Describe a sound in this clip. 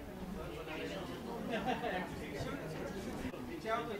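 Men talk with each other nearby.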